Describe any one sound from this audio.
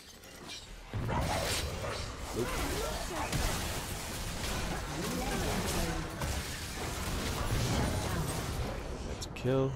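Game spell effects whoosh and hits clash rapidly during a fight.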